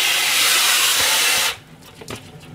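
Water runs from a tap into a sink, then stops.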